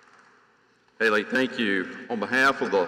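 An elderly man speaks calmly into a microphone, heard over loudspeakers in a large echoing hall.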